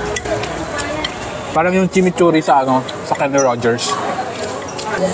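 Cutlery clinks on plates.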